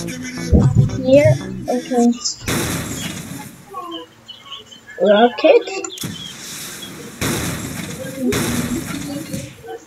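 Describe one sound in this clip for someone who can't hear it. A young boy talks with animation close to a microphone.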